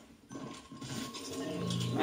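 A blaster fires a short zap.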